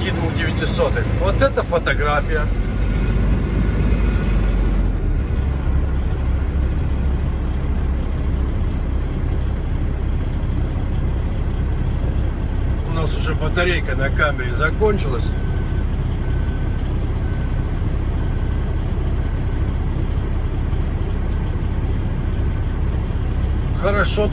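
A heavy truck engine rumbles low and steady nearby.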